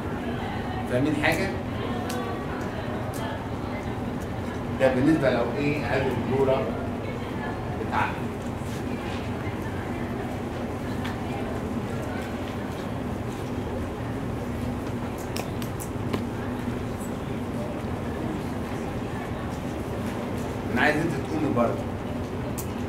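A man speaks calmly through a microphone, with pauses.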